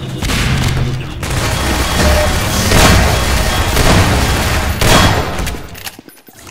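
Gunshots fire in rapid bursts with loud echoing blasts.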